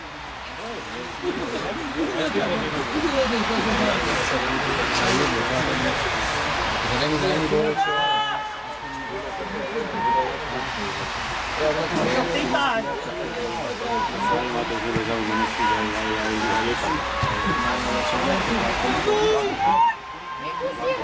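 Young men shout to one another at a distance outdoors.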